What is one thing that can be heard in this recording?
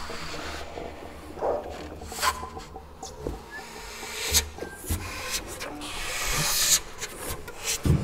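An electric guitar makes scraping, knocking sounds.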